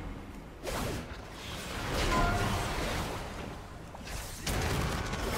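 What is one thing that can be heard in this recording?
Magic spells whoosh and crackle in a game battle.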